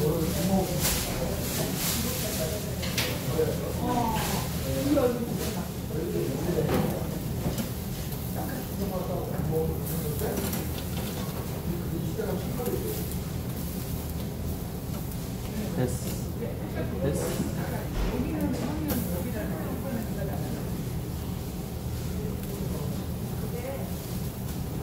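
Meat sizzles on a hot grill.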